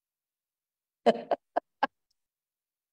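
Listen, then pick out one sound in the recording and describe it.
A middle-aged man laughs softly over an online call.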